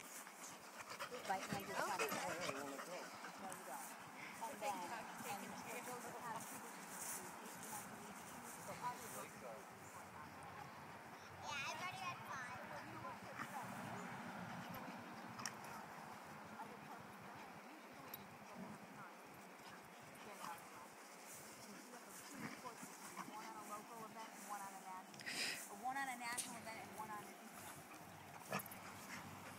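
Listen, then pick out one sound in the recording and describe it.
Dogs growl playfully.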